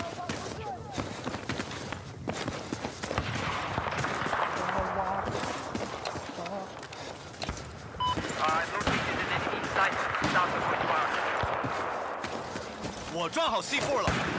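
Footsteps crunch quickly over gravel.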